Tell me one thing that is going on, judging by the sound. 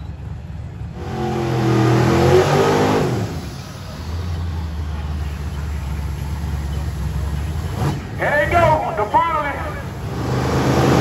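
A race car engine roars loudly and revs, then rumbles on steadily.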